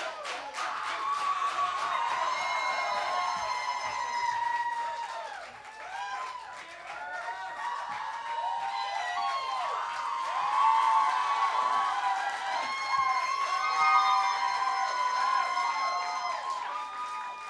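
An electric guitar squeals and wails through loud amplifiers.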